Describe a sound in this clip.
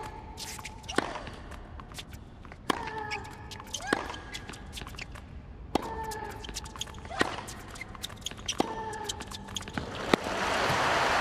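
A tennis ball is struck sharply by a racket, back and forth.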